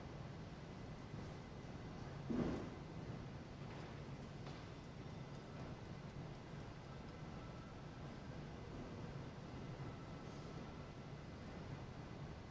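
Footsteps tap softly on a wooden floor in a large echoing hall.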